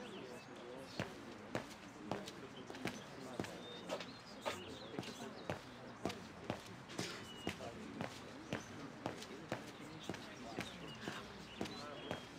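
Footsteps tap steadily on a stone pavement.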